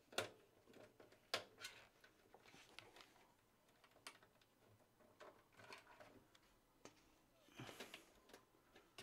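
Plastic cables rustle and click as a hand pushes them into place.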